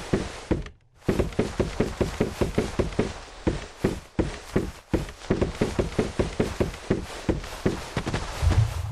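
Hands and feet knock steadily on wooden ladder rungs while climbing.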